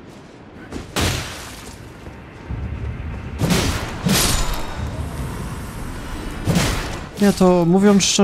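Sword blows land with heavy thuds and clangs.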